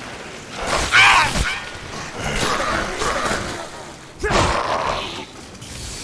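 A blade strikes flesh with a wet, heavy splatter.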